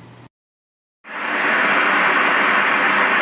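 Loud television static hisses steadily.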